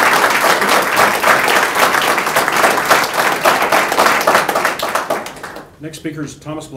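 A group of people applaud, clapping their hands.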